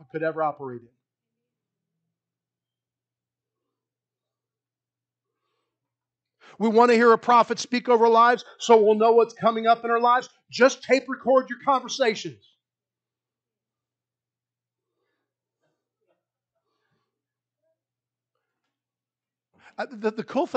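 A man preaches with animation into a microphone, with long pauses between phrases.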